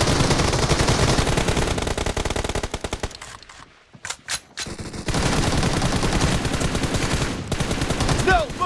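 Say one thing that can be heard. Rapid automatic gunfire rattles loudly in bursts.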